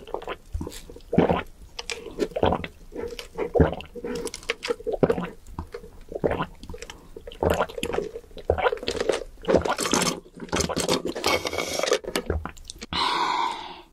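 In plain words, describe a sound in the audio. A young woman slurps a drink through a straw, close to a microphone.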